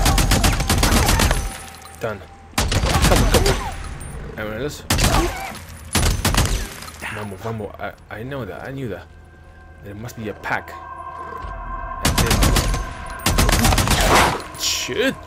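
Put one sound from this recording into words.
A rifle fires bursts of loud, rapid shots.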